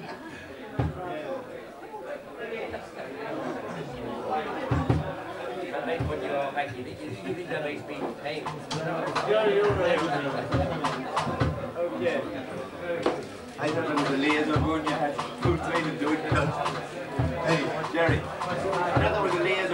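A bass guitar thumps out a steady beat.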